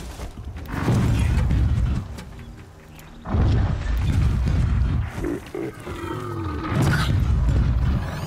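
A large machine creature stomps and crashes in battle.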